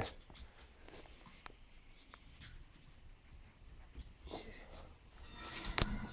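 A hand pats and scratches on a tile floor.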